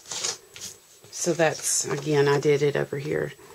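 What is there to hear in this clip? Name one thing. A sheet of card rustles as it is picked up.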